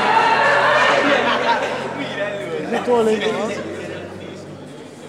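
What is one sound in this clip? Spectators nearby talk and cheer.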